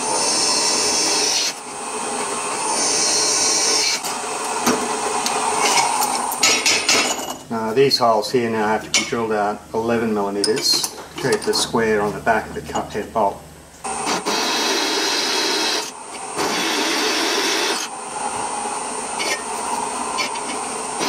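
A drill press motor whirs steadily as a bit grinds through metal.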